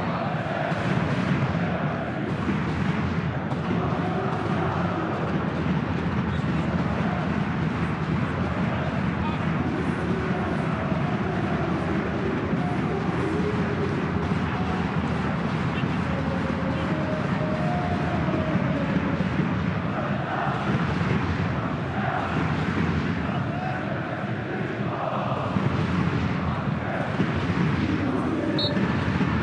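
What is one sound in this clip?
A large stadium crowd roars and chants steadily.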